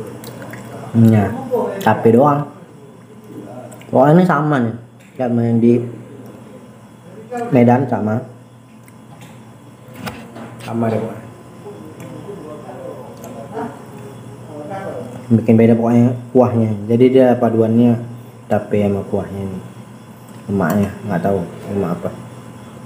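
A man talks close by in a relaxed, casual way.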